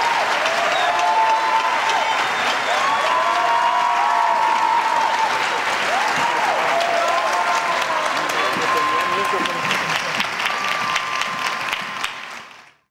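An orchestra plays strings and winds.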